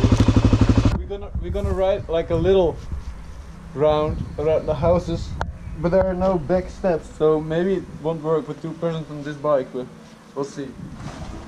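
A young man talks with animation close to the microphone.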